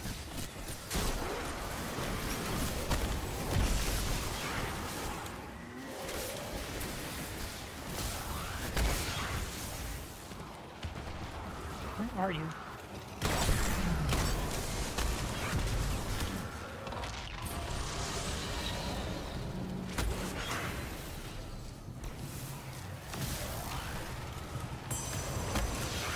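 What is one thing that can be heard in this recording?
Gunfire and blasts crackle in quick bursts.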